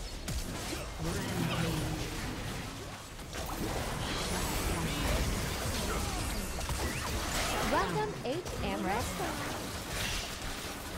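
Magic blasts and strikes crackle and whoosh in a fast fight.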